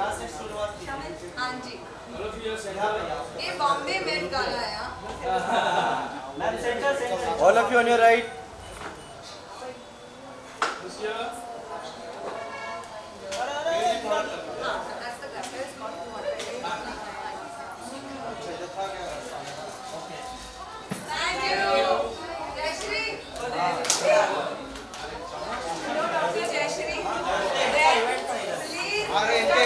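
Women talk and laugh with animation close by.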